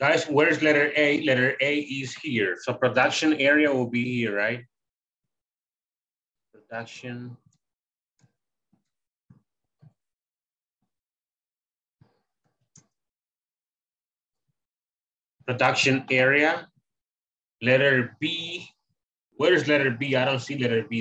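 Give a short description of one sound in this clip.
A man speaks calmly through a microphone on an online call, pausing between phrases.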